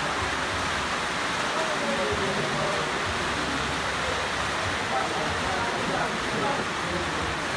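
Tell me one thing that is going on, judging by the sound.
Steady rain patters on leaves outdoors.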